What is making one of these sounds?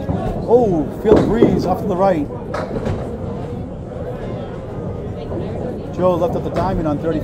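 A bowling ball rolls down a lane in a large echoing hall.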